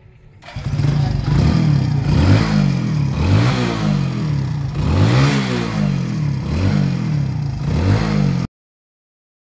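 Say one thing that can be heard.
A motorcycle engine idles and revs up and down repeatedly.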